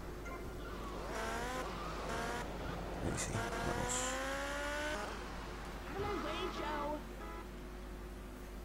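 A motorcycle engine revs and whines, rising and falling in pitch.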